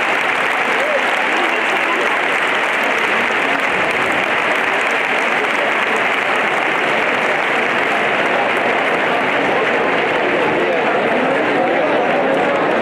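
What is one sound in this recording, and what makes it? A large crowd chatters in a dense, steady murmur all around.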